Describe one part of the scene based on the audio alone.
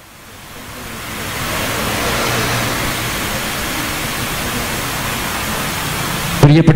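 A young man speaks loudly into a microphone, heard through loudspeakers.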